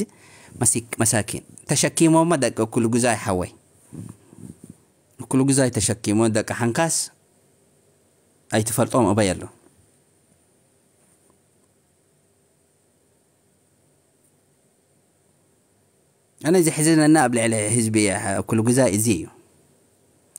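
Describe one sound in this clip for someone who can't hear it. A man speaks close to a microphone in short bursts, with pauses.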